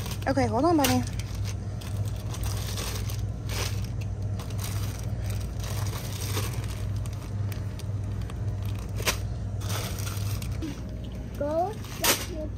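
A plastic bag of dry beans crinkles and rustles in a hand.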